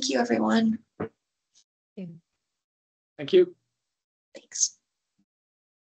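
A woman speaks in short phrases over an online call.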